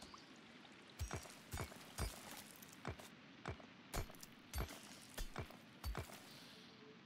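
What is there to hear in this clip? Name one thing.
Dull thuds of chopping wood come in a quick, regular series.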